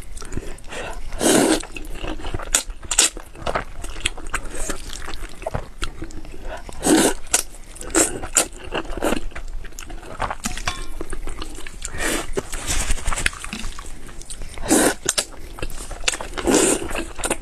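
A young woman slurps noodles loudly, close to a microphone.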